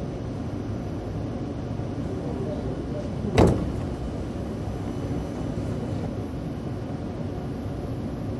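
A train hums steadily.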